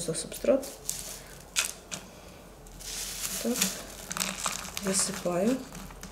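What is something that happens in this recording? Dry potting soil rustles and crackles under fingers.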